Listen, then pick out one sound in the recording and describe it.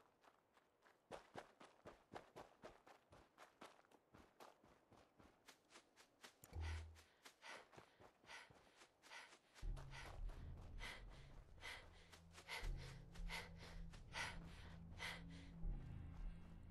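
Footsteps tread quickly over ground.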